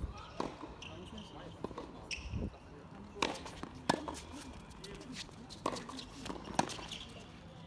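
Tennis balls are struck with rackets in a rally, with sharp pops.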